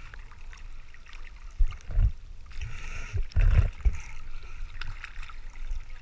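Water splashes and sloshes close by at the sea's surface.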